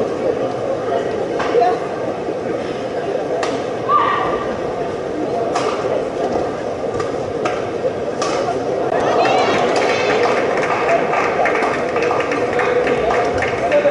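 A crowd murmurs and then cheers and applauds.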